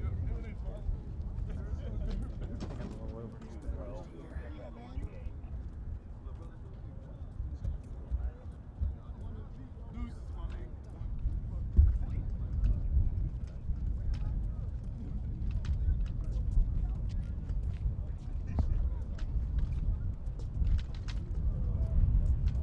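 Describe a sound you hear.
Footsteps shuffle on a concrete path.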